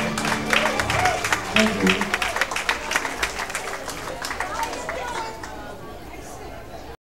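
A live band plays loudly, and the music fades toward the end.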